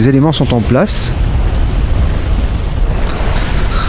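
Water splashes and laps as someone swims.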